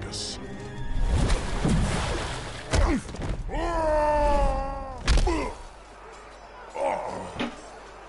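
Heavy blows and thuds land during a fight.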